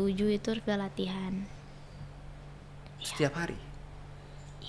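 A girl speaks calmly into a close microphone.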